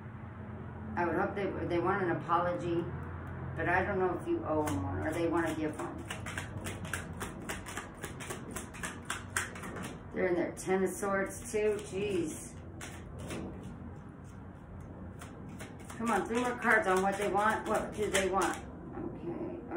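Cards shuffle with quick, rustling flicks.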